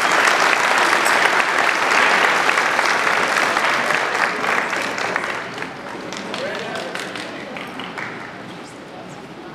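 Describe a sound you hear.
A crowd claps and applauds in a large echoing hall, then the clapping fades.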